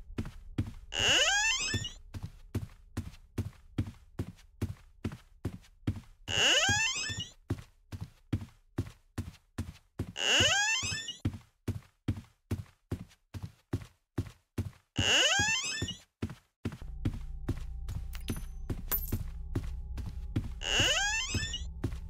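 A door creaks open with a swoosh, again and again.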